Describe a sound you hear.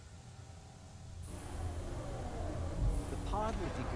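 A heavy metal hatch slides shut with a thud.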